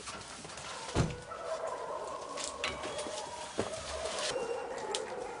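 A metal gate clanks and rattles.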